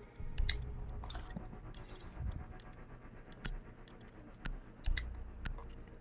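Soft interface clicks sound as menu options are selected.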